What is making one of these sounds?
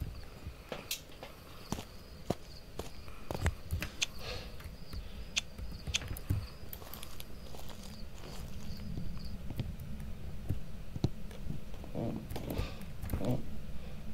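Footsteps tap steadily on stone cobbles.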